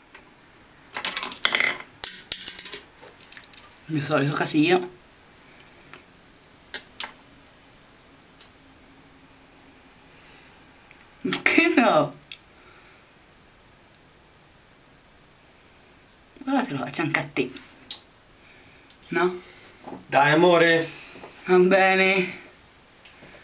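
A young woman talks close by in short bursts.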